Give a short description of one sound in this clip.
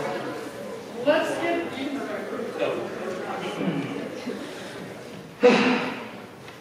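A young woman speaks in a large echoing hall.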